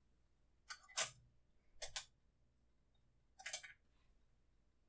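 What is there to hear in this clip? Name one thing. A brush scrubs against a canvas.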